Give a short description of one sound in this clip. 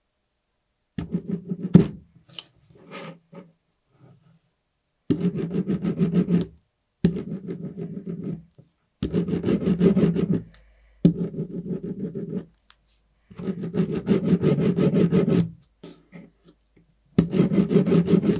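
An ink roller rolls back and forth with a sticky, crackling hiss.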